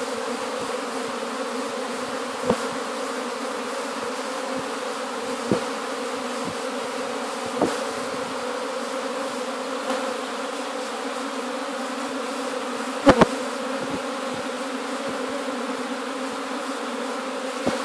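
A swarm of honeybees hums with a roaring drone.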